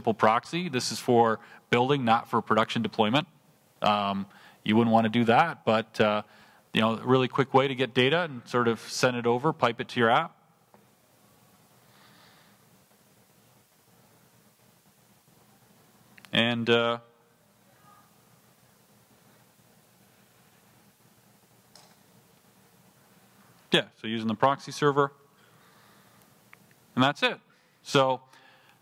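A man speaks calmly into a microphone, heard through a loudspeaker in a hall.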